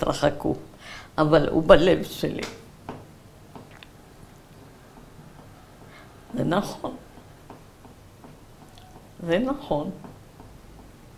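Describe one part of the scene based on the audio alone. An elderly woman speaks calmly and close by, with pauses.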